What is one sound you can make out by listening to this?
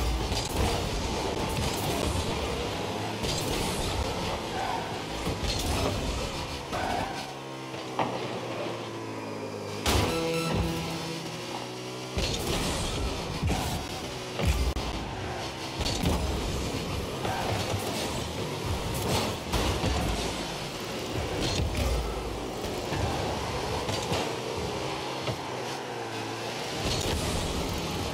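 A car engine hums and roars with boosts.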